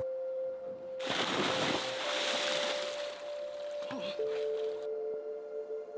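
Water rushes and churns loudly.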